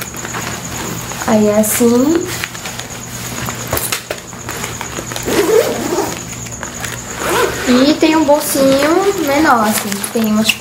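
Fabric of a backpack rustles as it is handled.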